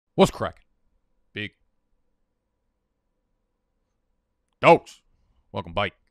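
A young man speaks into a close microphone in short bursts, with long pauses between.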